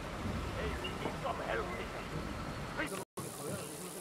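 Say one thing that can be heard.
Water laps gently against a wooden pier outdoors.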